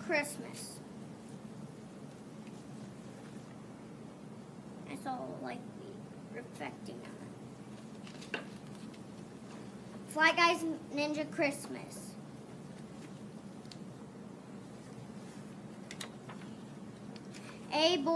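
Paper pages rustle as a book is handled.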